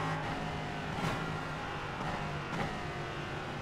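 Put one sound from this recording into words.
A racing car engine blips sharply as it shifts down through the gears.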